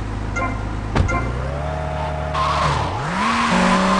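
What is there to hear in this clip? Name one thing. A car engine starts up and revs as the car pulls away.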